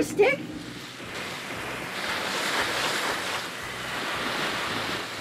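Waves break and wash onto a beach.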